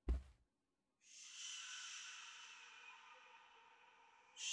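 A creature lets out a long hissing screech.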